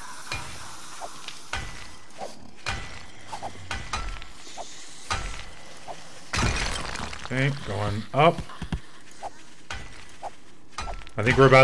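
A pickaxe strikes rock in sharp, repeated knocks.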